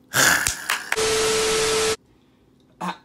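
Loud television static hisses with a steady beep.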